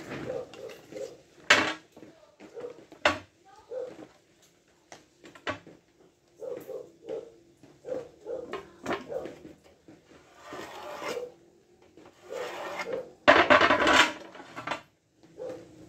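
A wooden board scrapes and knocks on a tiled surface.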